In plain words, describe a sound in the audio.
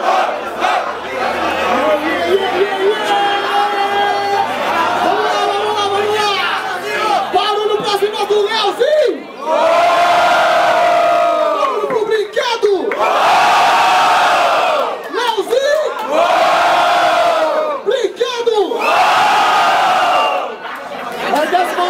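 A second young man raps forcefully into a microphone over loudspeakers.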